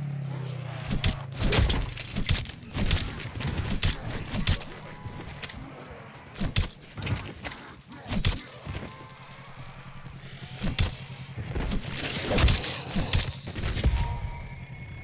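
Knife blows land with sharp thuds and slashes.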